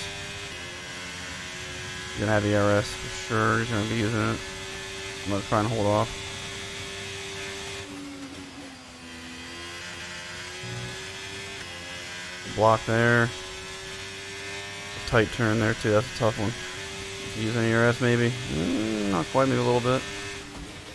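A racing car engine whines steadily, its pitch dipping now and then.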